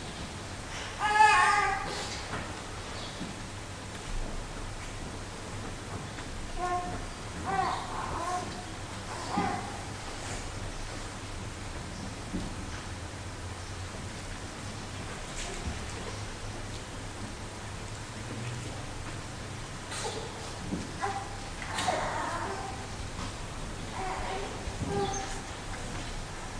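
A man chants quietly at a distance in a large echoing hall.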